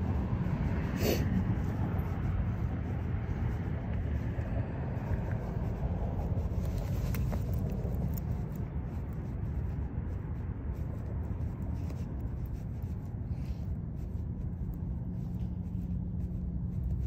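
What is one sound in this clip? Fabric rustles and scrapes close by.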